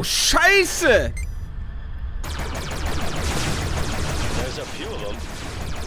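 Laser guns fire in quick bursts.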